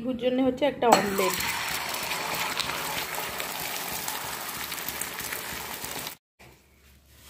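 Beaten egg sizzles loudly in a hot pan.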